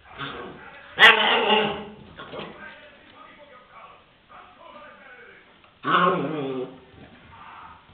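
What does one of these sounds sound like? A puppy yelps and growls during play.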